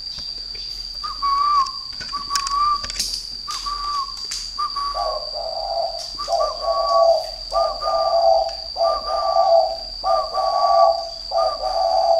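A small bird calls again and again with short, repeated notes close by.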